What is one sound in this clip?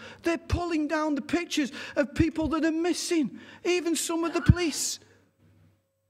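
A middle-aged man preaches with animation through a microphone.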